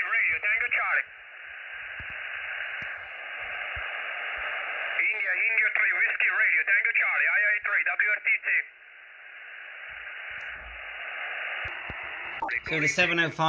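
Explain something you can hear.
Radio static hisses steadily between the voices.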